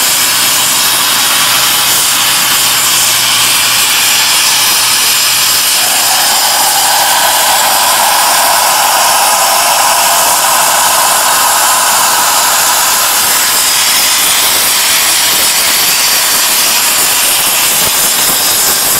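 A plasma torch hisses and roars steadily as it cuts through steel.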